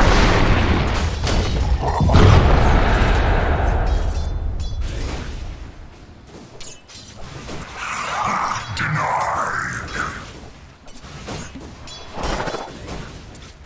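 Blades clash and strike in quick hits.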